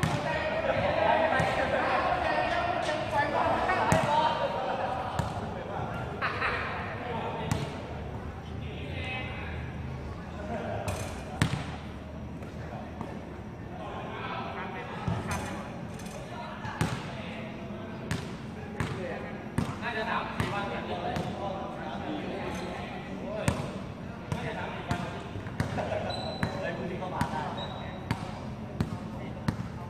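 A basketball bounces on a hard court again and again.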